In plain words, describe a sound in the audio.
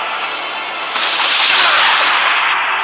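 A magical whoosh and shimmer burst out loudly.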